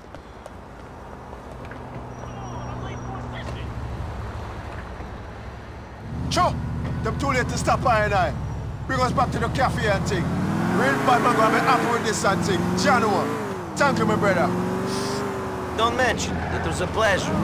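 A car engine idles and then revs loudly as the car drives off.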